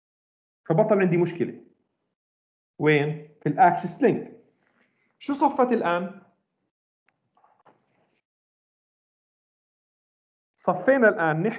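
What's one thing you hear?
A man lectures calmly over an online call, in bursts with pauses.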